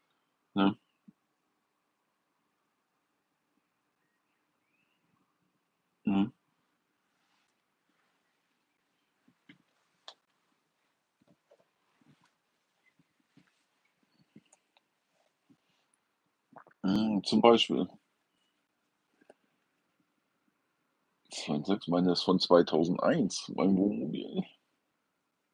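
A middle-aged man speaks calmly, close by, in short bursts with long pauses.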